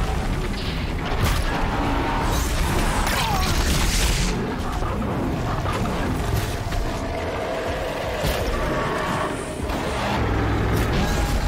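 Arrows whoosh from a bow.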